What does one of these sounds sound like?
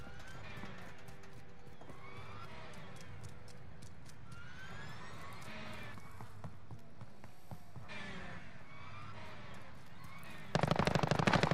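Footsteps thud quickly on hard ground.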